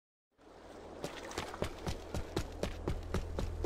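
Footsteps slap quickly on pavement.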